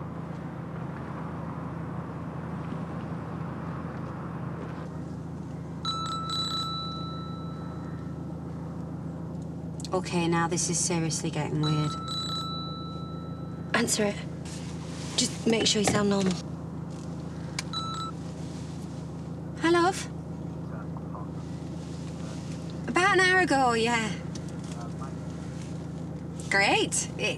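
A car engine hums low inside a moving car.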